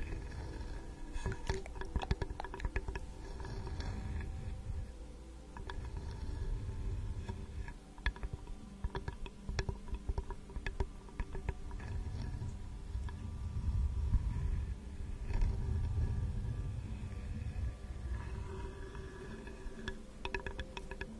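Long fingernails tap and scratch on a wooden spoon close to a microphone.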